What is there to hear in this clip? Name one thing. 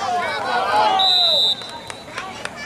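A referee's whistle blows once, short and sharp.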